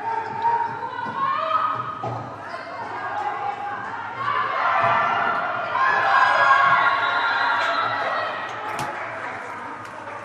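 Young women shout and cheer in a large echoing hall.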